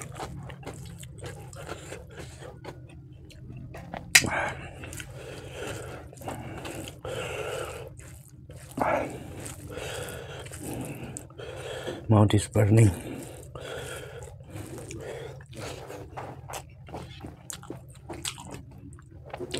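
Fingers squelch as they mix rice with sauce.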